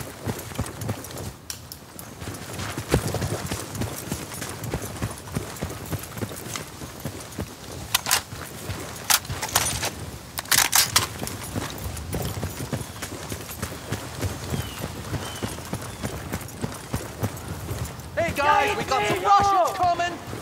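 Footsteps crunch steadily on gravel and grass.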